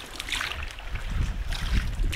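A wooden oar splashes and creaks in the water.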